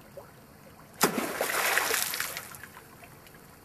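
Water splashes as a man wades through a shallow stream.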